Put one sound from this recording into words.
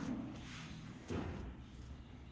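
A dull thud sounds as a man lies back onto a padded floor.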